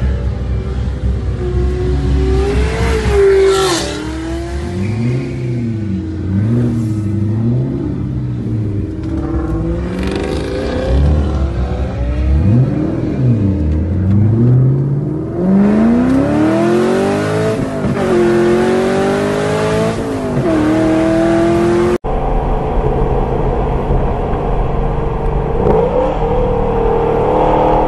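A car engine revs loudly, its pitch rising and falling.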